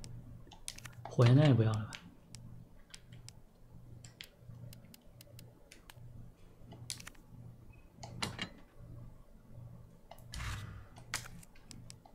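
Short game menu clicks tick as a cursor moves between items.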